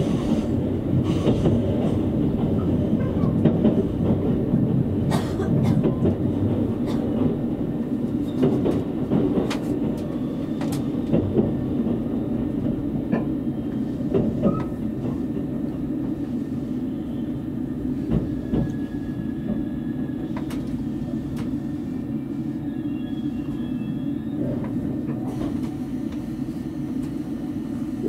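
A train rumbles steadily along the tracks and slows down.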